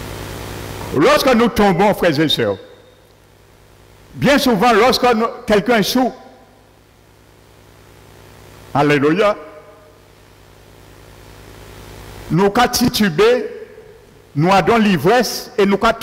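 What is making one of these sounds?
A middle-aged man speaks with animation through a microphone in an echoing room.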